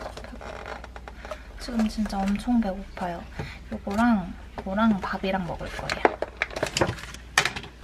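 A plastic container crackles as it is opened.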